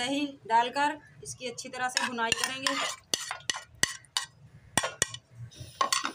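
A spoon scrapes food off a plate into a pot.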